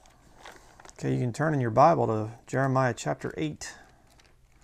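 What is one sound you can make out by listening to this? A man speaks calmly and close by, as if reading aloud.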